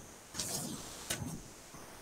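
Plastic wrapping rustles and crinkles.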